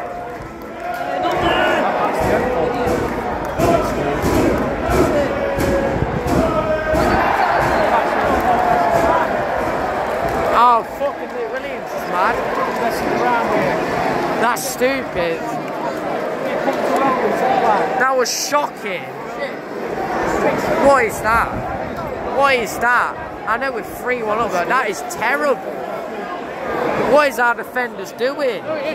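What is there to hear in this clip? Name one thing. Nearby fans shout and cheer.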